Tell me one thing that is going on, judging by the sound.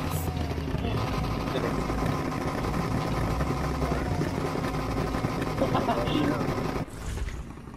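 Car exhausts pop and crackle.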